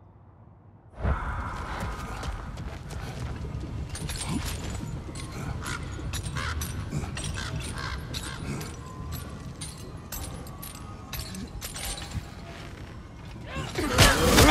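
A heavy chain rattles and clinks as a warrior climbs it.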